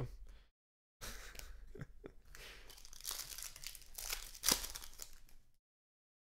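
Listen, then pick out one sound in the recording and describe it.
Cards shuffle and slide against each other.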